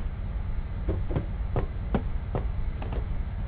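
Footsteps tap steadily.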